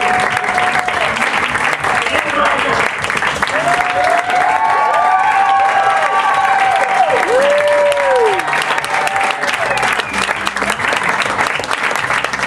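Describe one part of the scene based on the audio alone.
A small audience and cast applaud with fast clapping.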